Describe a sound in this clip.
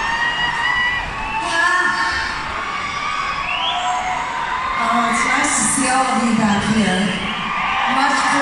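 A woman sings into a microphone over loudspeakers in a large echoing arena.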